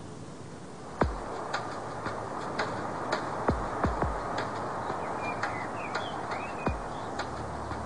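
Footsteps thud on soft ground outdoors.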